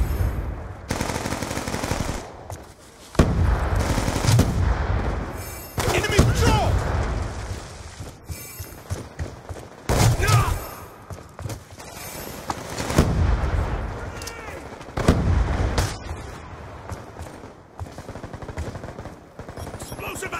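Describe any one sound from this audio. Rifle shots ring out in quick bursts.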